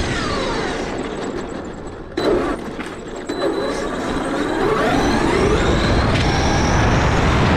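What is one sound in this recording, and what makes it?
Plastic tyres rumble and rattle over cobblestones.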